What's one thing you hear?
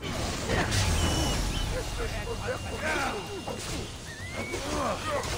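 Men grunt and shout in battle.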